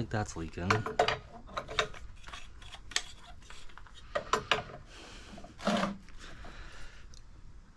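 Metal tools clink against pipe fittings.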